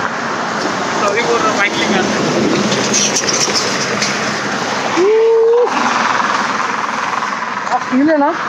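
A young man talks close to the microphone.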